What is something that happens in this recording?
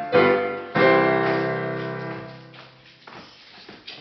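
A piano plays loud chords that ring out and fade.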